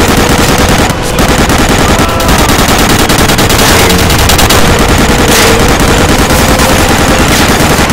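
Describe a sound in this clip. A heavy machine gun fires in rapid, continuous bursts.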